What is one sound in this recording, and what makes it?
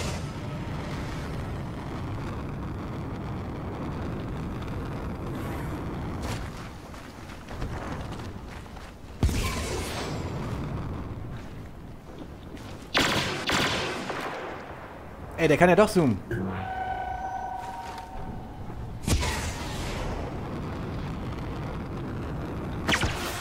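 A jetpack roars with a steady rushing thrust.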